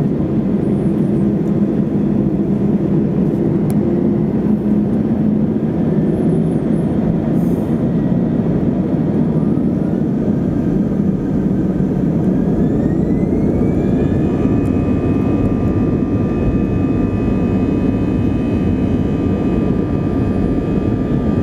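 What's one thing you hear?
Jet engines roar steadily, heard from inside an aircraft cabin.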